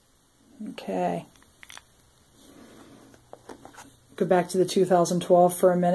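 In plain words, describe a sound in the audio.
A plastic coin capsule taps against a tabletop.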